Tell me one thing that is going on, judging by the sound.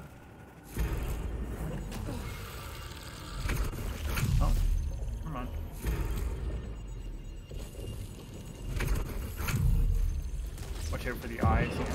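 Game sound effects whoosh with deep rumbles.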